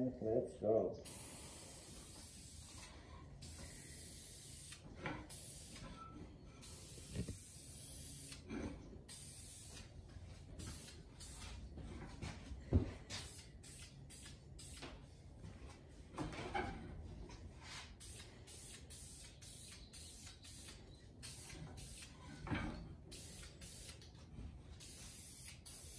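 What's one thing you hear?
An aerosol can hisses in short sprays.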